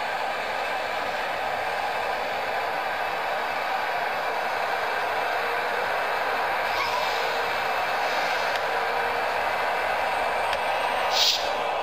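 A stadium crowd murmurs steadily through a small phone speaker.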